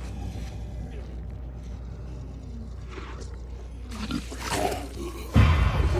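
A monster growls and shrieks nearby.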